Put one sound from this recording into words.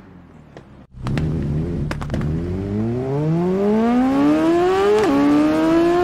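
A motorcycle engine revs up again from low.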